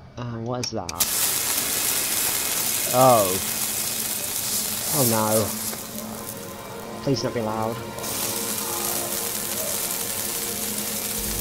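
Electric sparks crackle and hiss steadily.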